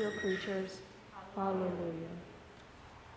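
A young person speaks briefly through a microphone.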